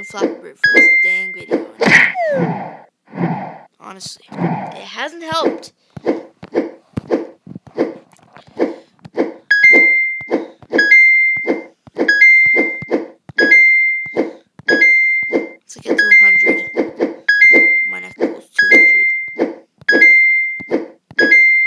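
A game bird flaps its wings with quick, soft whooshes again and again.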